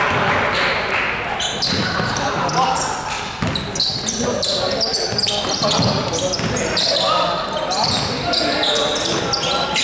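Sneakers squeak sharply on a hard floor, echoing in a large hall.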